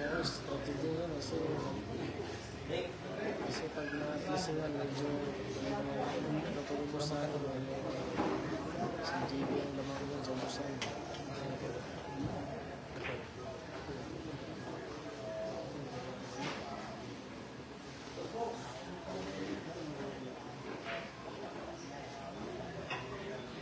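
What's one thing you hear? A crowd of men chatter in a large room.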